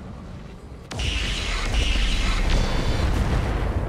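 Weapons fire in bursts.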